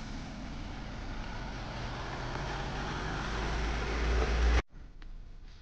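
A vehicle engine rumbles close by.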